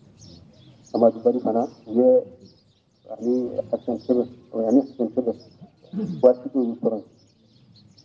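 An elderly man speaks slowly and solemnly, close by.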